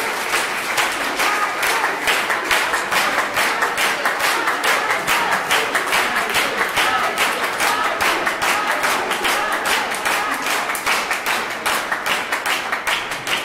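An audience claps in steady rhythm.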